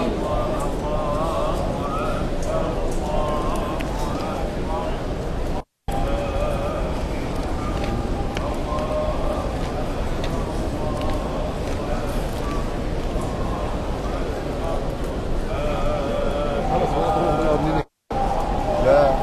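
A large crowd of men chants and calls out loudly nearby.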